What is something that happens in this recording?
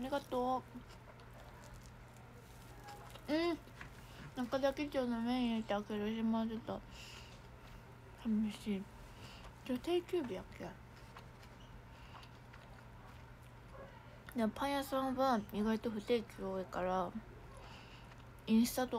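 A young woman speaks with her mouth full, close by, in short animated bursts.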